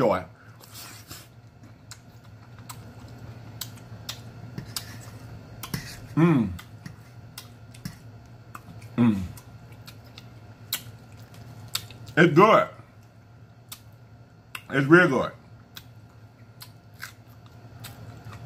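A man chews food with wet mouth sounds.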